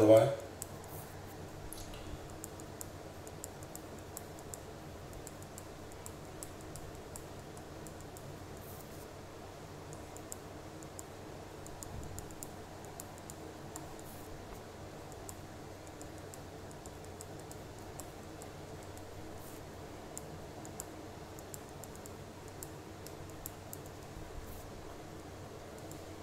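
A pen scratches softly across paper.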